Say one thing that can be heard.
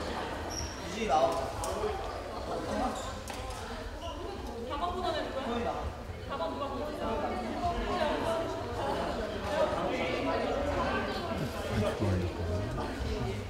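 Young women call out to each other in an echoing hall.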